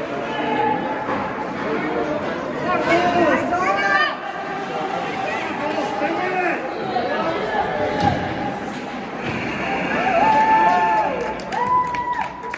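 Young players shout to each other across the rink.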